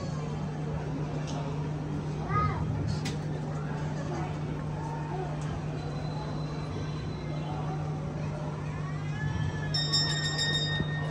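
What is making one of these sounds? A crowd of people murmurs quietly.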